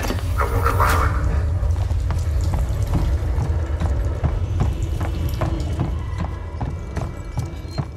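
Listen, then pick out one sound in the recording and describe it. Footsteps thud steadily on a hard metal floor.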